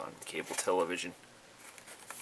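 A young man speaks briefly and casually, close by.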